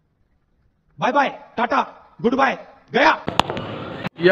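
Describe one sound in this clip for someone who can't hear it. A man speaks forcefully through a microphone.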